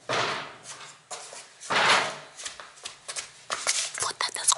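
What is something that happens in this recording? Footsteps slap on a hard tiled floor, coming closer.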